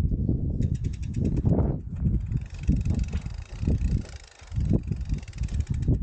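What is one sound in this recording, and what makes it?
A mountain bike's freewheel ticks rapidly while coasting.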